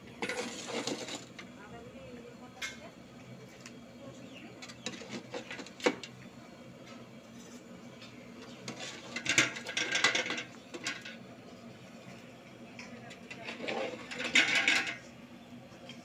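Chilli peppers hiss and sizzle as they drop into hot oil.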